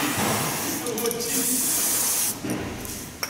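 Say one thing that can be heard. An aerosol can hisses as it sprays.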